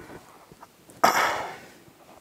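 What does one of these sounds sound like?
A hand brushes across a sheet of paper.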